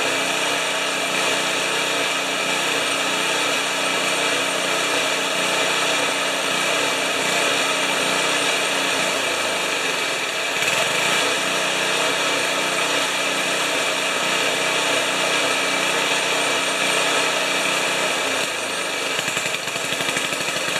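A single-cylinder snowblower engine runs.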